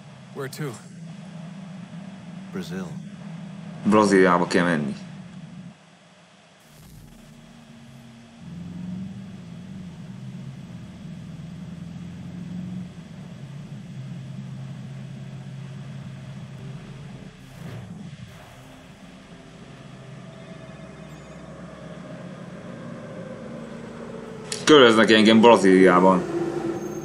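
A young man talks with animation into a microphone, in short bursts.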